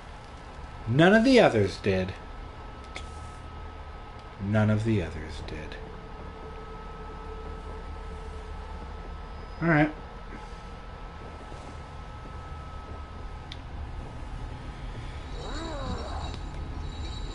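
A man speaks in short, animated bursts close to a microphone.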